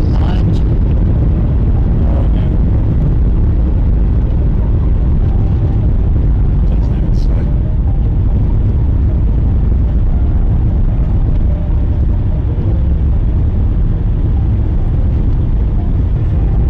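Tyres hiss on a snowy road.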